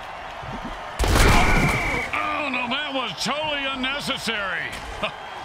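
Armoured players collide with heavy thuds.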